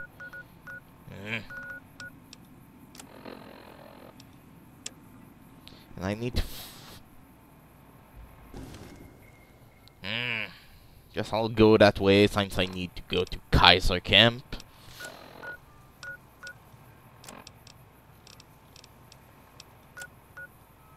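Short electronic beeps and clicks sound repeatedly.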